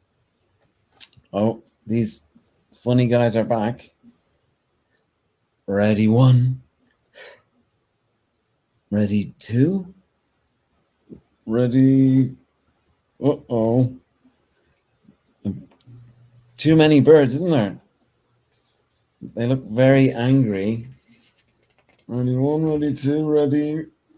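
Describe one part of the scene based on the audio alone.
A middle-aged man reads aloud expressively in short phrases, close to the microphone.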